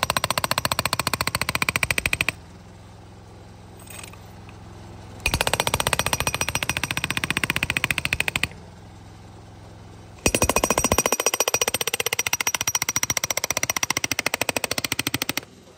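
A pneumatic jackhammer pounds rapidly into asphalt in loud bursts with short pauses.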